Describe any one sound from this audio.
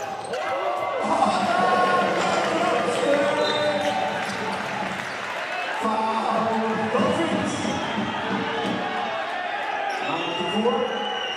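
A crowd in a large echoing arena cheers loudly.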